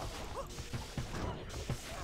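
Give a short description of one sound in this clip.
A burst of flame roars briefly.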